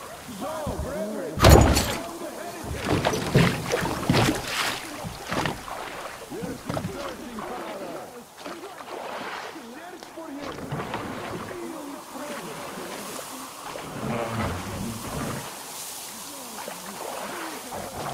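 Oars splash and dip in calm water.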